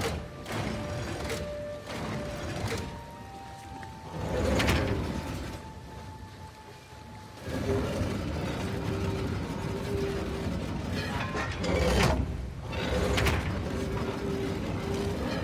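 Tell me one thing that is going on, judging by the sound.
A heavy wooden wheel creaks and clunks as it turns.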